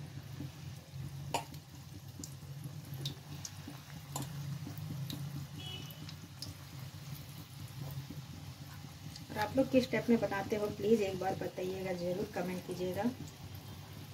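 A metal spoon clinks against an iron wok.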